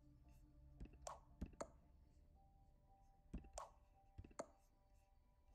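Short, sharp game clicks sound as menu items are picked.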